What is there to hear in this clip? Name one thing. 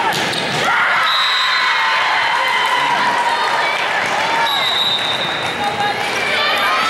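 A referee's whistle blows.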